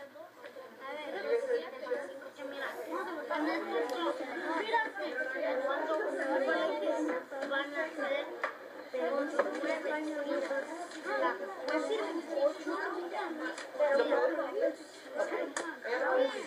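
Several children talk and chatter over one another in a room.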